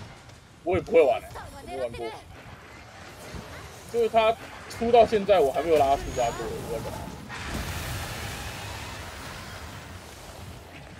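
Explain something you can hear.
Flames crackle and hiss.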